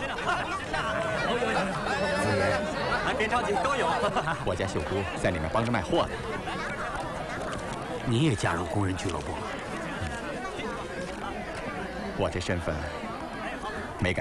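A crowd of men chatters close by.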